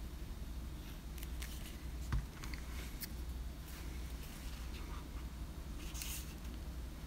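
Paper pieces rustle and crinkle softly as fingers handle them.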